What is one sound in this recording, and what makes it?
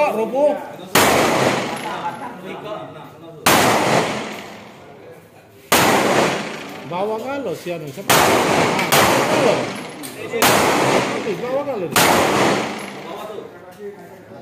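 Pistol shots crack loudly one at a time outdoors, each ringing out briefly.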